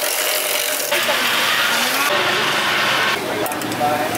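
A blender whirs loudly.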